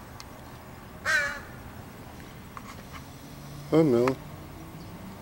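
A crow caws loudly nearby.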